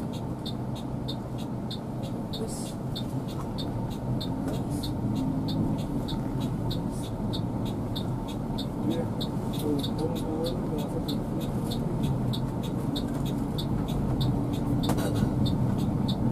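A heavy vehicle's engine rumbles steadily while driving.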